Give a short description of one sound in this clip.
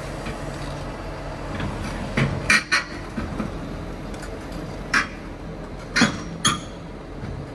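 A diesel engine of an excavator rumbles steadily.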